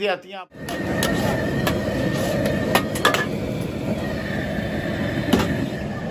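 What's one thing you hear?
A metal spatula clinks and scrapes against a wok.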